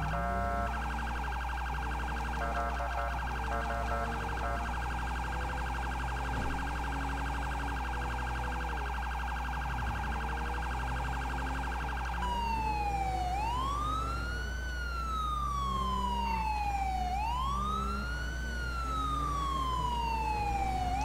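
A car engine revs up and drops as it shifts gears.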